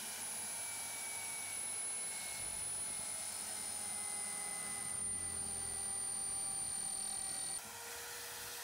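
A drill press motor whines steadily.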